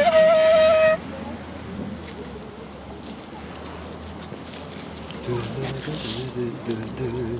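Thick fabric rustles and brushes close against the microphone.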